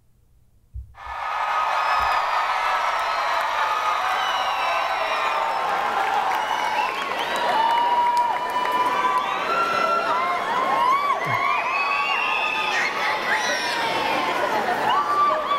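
Loud music plays from a dance show.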